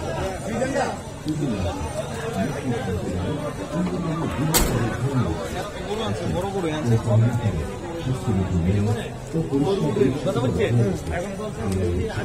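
A crowd of men talks and shouts excitedly outdoors.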